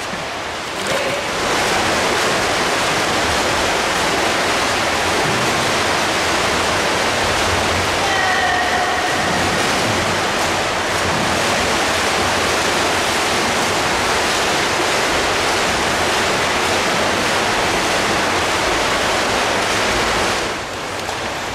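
Swimmers splash and churn the water in an echoing indoor pool.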